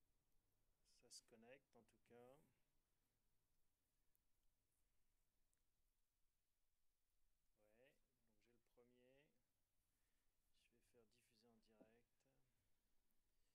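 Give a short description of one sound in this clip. A man speaks briefly and quietly nearby, with long pauses.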